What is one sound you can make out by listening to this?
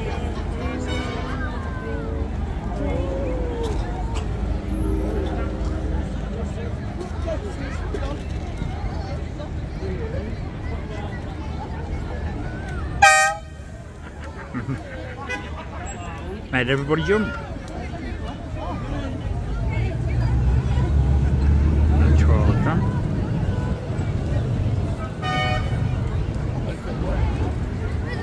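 A tram rumbles slowly along rails outdoors.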